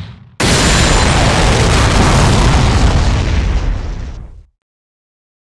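A loud, fiery blast roars and rumbles, then suddenly cuts off.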